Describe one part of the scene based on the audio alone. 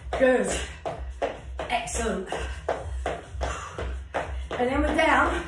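A woman talks with energy, close to the microphone.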